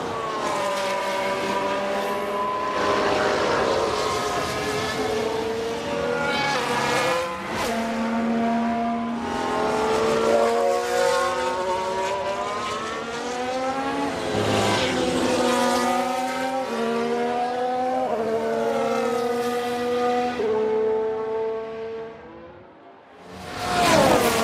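A racing car engine screams at high revs, rising in pitch and dropping with each gear change.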